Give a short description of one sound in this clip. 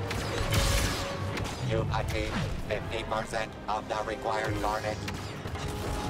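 A lightsaber hums and swooshes.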